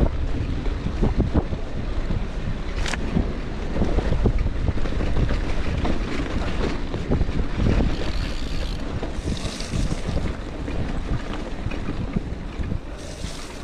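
Bicycle tyres crunch and rumble over a rough dirt track.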